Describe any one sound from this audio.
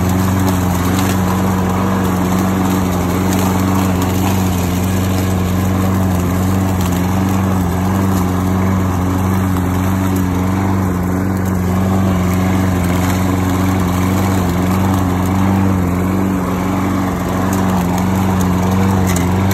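A petrol lawn mower engine roars steadily up close.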